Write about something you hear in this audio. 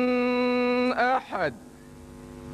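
A young man chants in a long drawn-out voice through a microphone and loudspeaker, outdoors.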